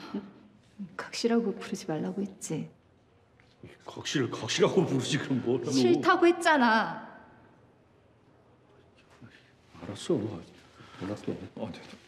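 A young woman speaks coldly and firmly, close by.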